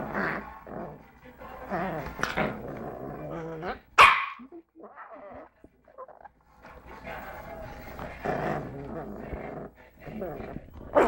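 A small dog gnaws and chews on a toy close by.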